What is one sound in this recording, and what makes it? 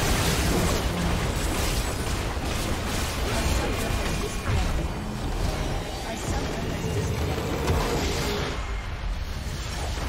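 Game spell effects and combat blasts crackle and boom loudly.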